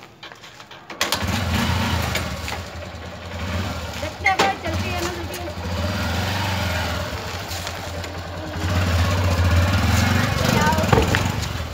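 A motorcycle engine runs with a low, steady rumble close by.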